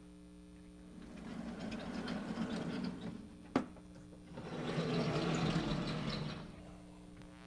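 Heavy chalkboard panels slide along their tracks with a rumbling scrape.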